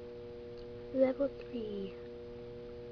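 A young girl says a few words close to the microphone.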